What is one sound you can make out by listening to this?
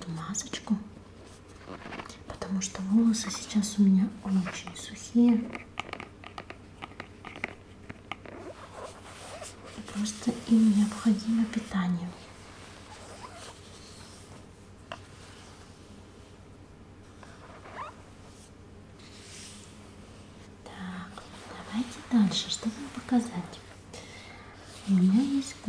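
Fingertips tap and scratch on a plastic jar lid.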